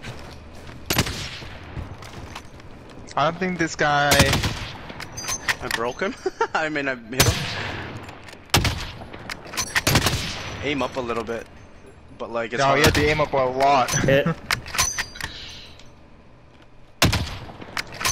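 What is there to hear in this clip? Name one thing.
A rifle fires loud single shots with a sharp echo.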